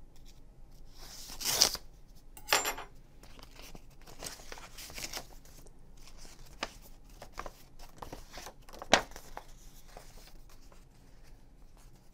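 Paper rustles as sheets are handled and folded.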